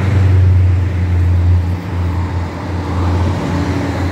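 A truck drives past.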